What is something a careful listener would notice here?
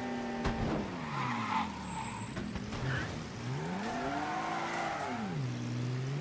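Tyres screech as a car skids around a corner.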